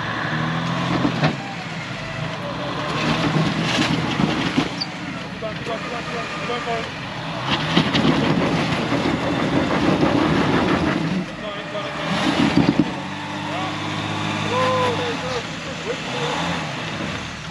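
A man talks outdoors nearby.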